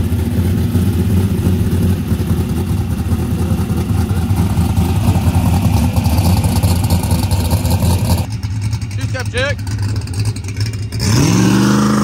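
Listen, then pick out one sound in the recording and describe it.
A big engine idles with a loud, lumpy rumble.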